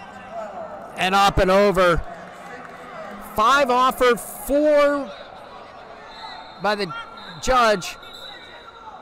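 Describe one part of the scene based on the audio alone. A man shouts loud, short calls of encouragement in a large echoing hall.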